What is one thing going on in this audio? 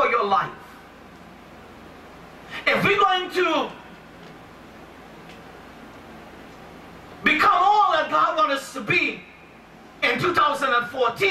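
A man preaches with animation through a microphone, in bursts with pauses, in a room with some echo.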